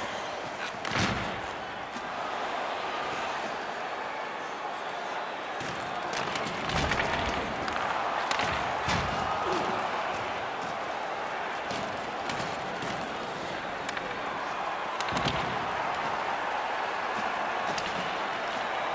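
A crowd cheers and murmurs steadily in a large arena.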